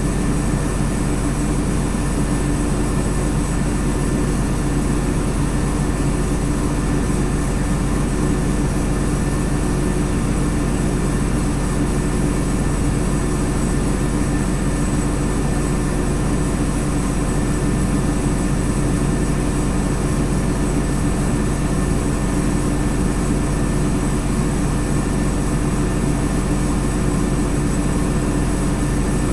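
A bus engine idles with a steady low rumble, heard from inside the bus.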